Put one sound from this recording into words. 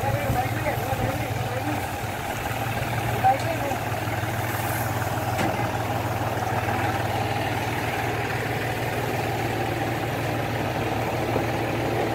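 Liquid sprays from a hose with a hiss.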